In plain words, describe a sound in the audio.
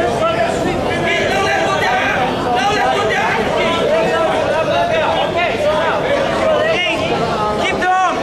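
A crowd of spectators shouts and cheers throughout a large echoing hall.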